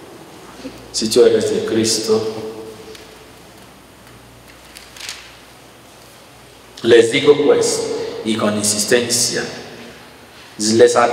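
A man speaks calmly into a microphone, heard through a loudspeaker in an echoing room.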